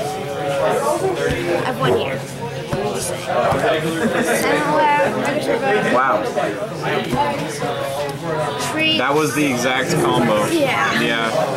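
Playing cards are slid and set down on a table.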